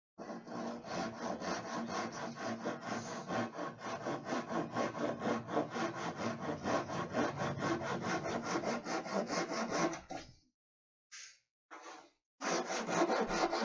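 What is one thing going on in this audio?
A man rubs a board with quick, rhythmic rasping strokes, pausing briefly near the end.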